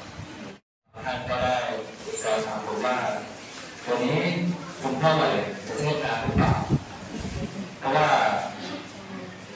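A man speaks steadily through a microphone in an echoing hall.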